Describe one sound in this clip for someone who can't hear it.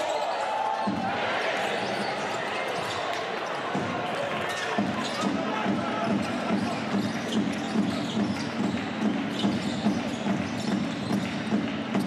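A crowd cheers and chants rhythmically in an echoing arena.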